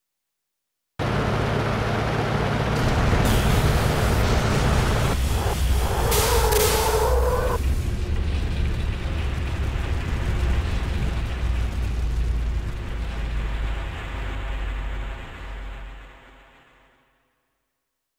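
Heavy trucks rumble past with a deep, steady roar that fades away.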